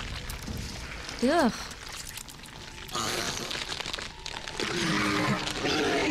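A monstrous creature growls and roars.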